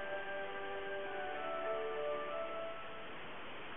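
Game music plays a short tinkling tune.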